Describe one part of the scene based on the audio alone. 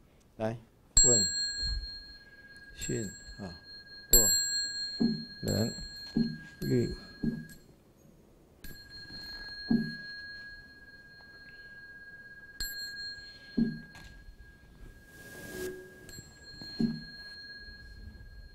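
A bell is struck and rings out, humming steadily.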